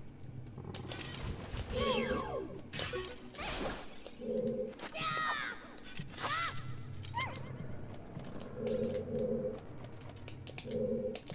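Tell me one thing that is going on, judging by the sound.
Game sound effects chime, swish and ring in quick bursts.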